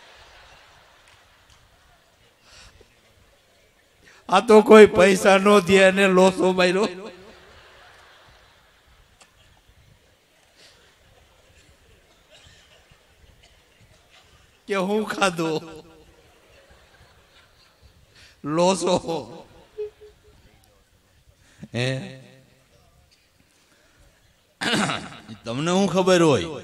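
A middle-aged man laughs heartily into a microphone.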